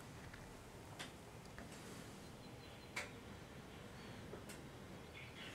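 Short soft clicks sound as menu options change.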